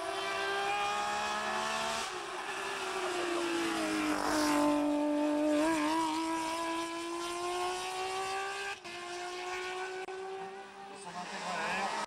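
A racing car engine roars loudly and revs up and down as it passes close by.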